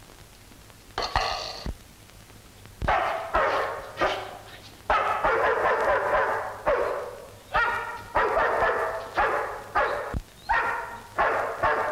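A large dog barks loudly and repeatedly, close by.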